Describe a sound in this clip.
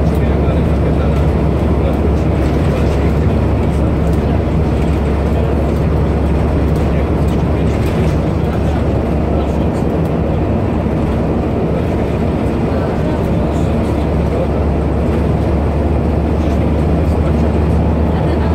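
Loose fittings rattle and clatter as the bus rides.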